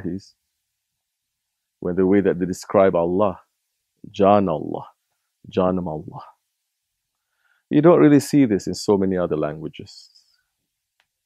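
A man speaks calmly into a microphone, in short phrases with pauses.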